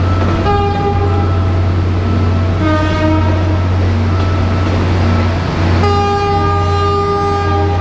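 A train rumbles steadily past nearby.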